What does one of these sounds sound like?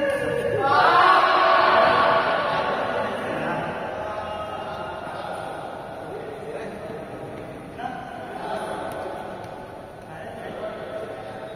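Badminton rackets smack a shuttlecock back and forth.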